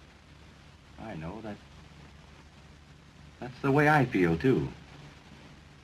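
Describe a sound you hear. A young man answers softly, close by.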